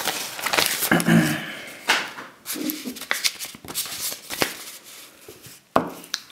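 Sheets of paper rustle as they are unfolded.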